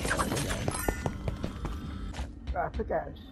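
Rapid game combat sounds clash and crackle.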